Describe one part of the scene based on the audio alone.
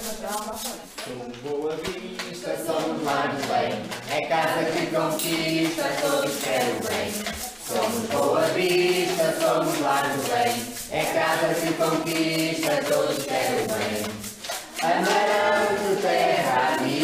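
A group of elderly people sings together.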